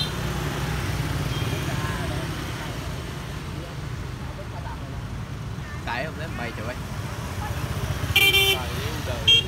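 Motorbike engines hum as scooters ride past.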